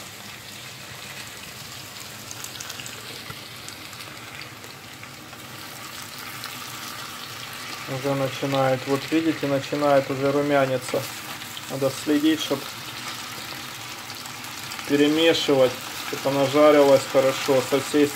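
Potatoes sizzle softly as they fry in a pan.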